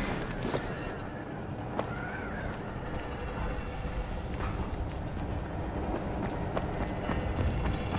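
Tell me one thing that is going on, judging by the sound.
Footsteps run quickly over a concrete rooftop.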